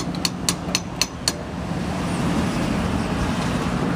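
A fuel nozzle clunks as it is lifted from a pump.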